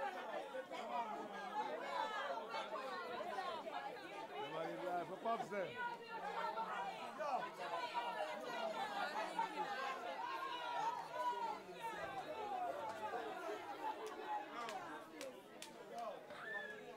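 A crowd of young men and women talks and shouts loudly all around.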